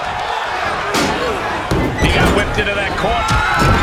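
Bodies slam heavily onto a wrestling mat with loud thuds.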